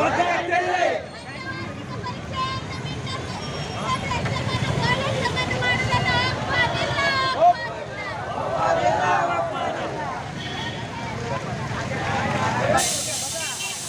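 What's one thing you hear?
Motorcycle engines idle and rumble nearby.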